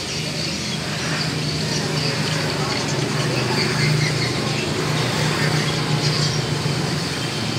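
Scissors snip through dried fish.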